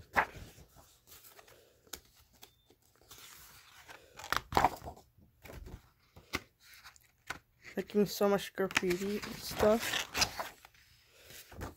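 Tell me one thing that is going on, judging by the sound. Paper pages rustle as they are turned by hand.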